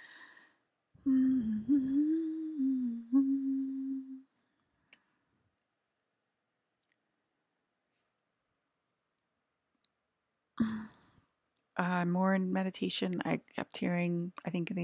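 A woman sings long, steady notes close to a microphone.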